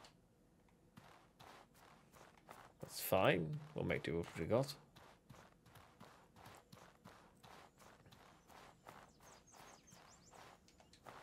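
Quick footsteps run over ground.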